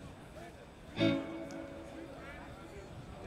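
An electric guitar plays a ringing chord through loudspeakers outdoors.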